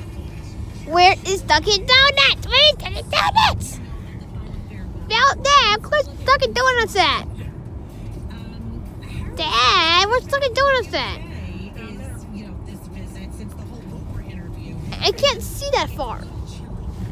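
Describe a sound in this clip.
A high, squeaky, cartoonish voice talks animatedly in short bursts, close by.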